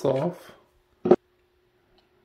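A plastic tool part clicks sharply.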